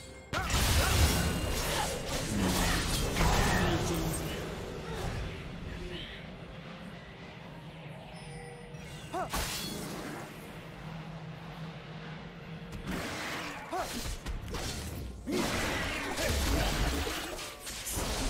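Magic spells whoosh and crackle in a video game fight.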